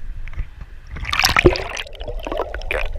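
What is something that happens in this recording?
Water splashes and gurgles close by.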